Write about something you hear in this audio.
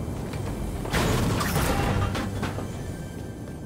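A pickaxe smashes repeatedly into a metal refrigerator.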